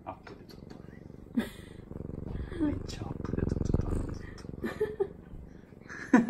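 A hand rubs a cat's fur close by.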